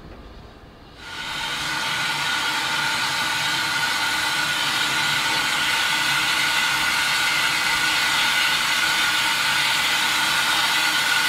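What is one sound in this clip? Steam hisses from a standing steam tank locomotive.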